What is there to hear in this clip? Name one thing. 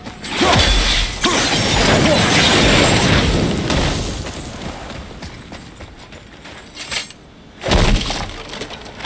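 Wind howls in a strong, gusting snowstorm.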